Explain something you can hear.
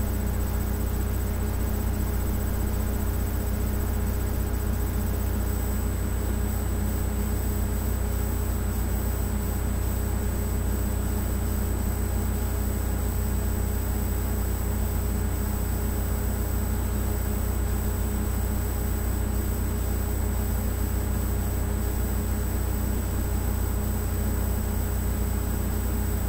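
Music plays from a tablet's small speaker.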